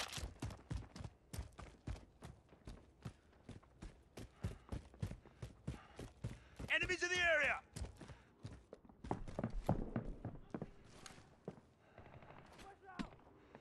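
Footsteps crunch quickly over dirt and wooden floors.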